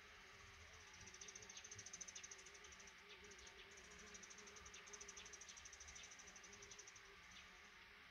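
Baby birds beg in a high, buzzing chorus that then stops.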